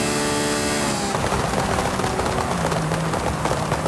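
A sports car engine drops in pitch as the car brakes and slows.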